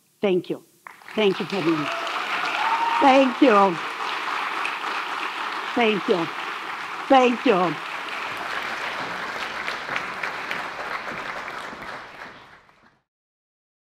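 An audience applauds and cheers.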